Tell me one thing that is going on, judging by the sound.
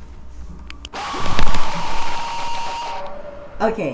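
A loud, harsh screech suddenly blasts and then cuts off.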